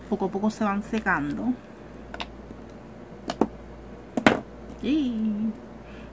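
Plastic lipstick tubes click and clatter as they are handled.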